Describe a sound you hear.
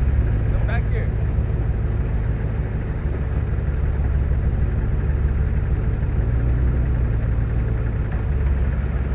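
A pickup truck engine idles with a steady low rumble.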